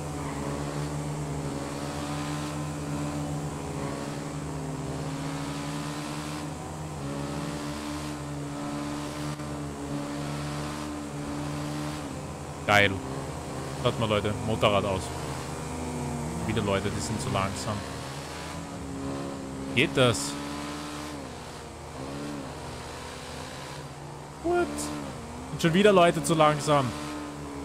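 A motorcycle engine hums steadily, rising and falling slightly in pitch.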